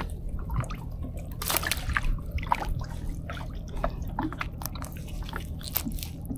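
Gloved hands rustle and tug at a nylon gill net, freeing a fish.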